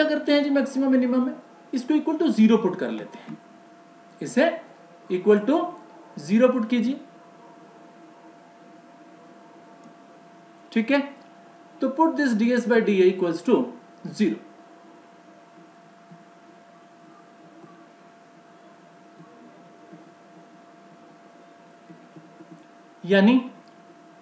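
A man explains calmly through a microphone, in short bursts with pauses.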